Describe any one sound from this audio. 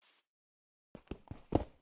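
A pickaxe digs into dirt with quick, short thuds.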